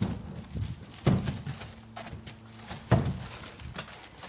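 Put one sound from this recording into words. Boots thud on a wooden roof.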